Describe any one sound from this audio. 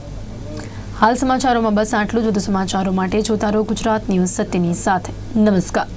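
A young woman reads out the news clearly through a microphone.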